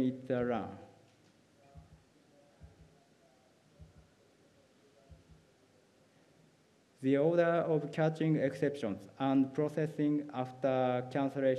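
A young person speaks calmly into a microphone.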